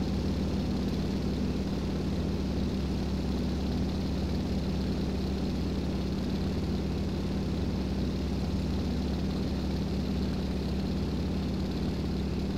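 A propeller engine drones steadily and loudly from close by.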